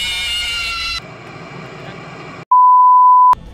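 Harsh static hisses.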